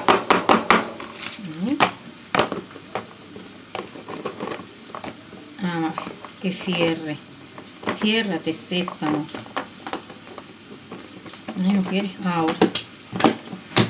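A plastic lid snaps and clicks onto a container.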